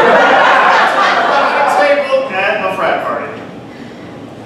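An audience cheers and applauds loudly in an echoing room.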